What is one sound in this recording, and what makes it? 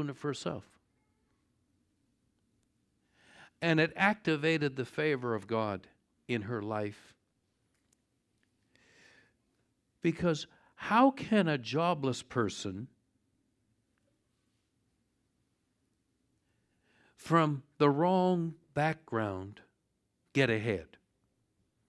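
An older man speaks calmly through a microphone, with pauses.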